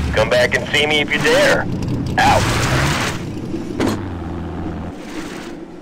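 Tyres skid and crunch over gravel.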